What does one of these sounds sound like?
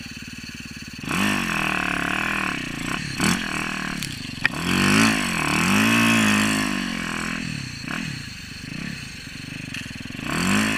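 Snow crunches and sprays under the bike's tyres.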